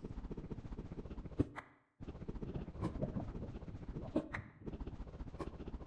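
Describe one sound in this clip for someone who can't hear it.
A pickaxe chips steadily at hard stone.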